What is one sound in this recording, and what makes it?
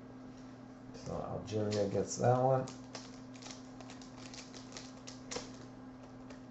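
Plastic sleeves crinkle and rustle as cards are handled.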